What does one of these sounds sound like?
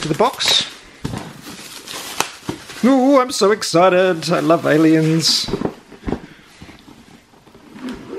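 A cardboard box is handled and set down on a table.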